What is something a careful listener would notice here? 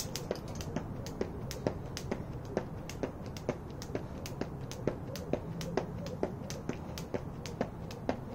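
A jump rope whips and slaps the ground in a steady, quick rhythm.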